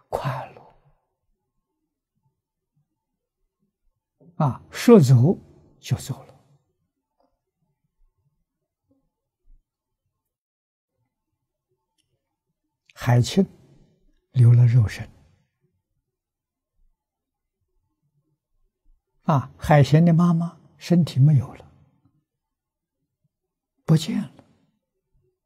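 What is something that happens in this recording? An elderly man speaks calmly into a close microphone, in short phrases with long pauses.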